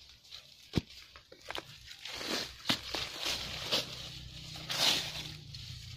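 Dry leaves rustle as dirt is swept over them.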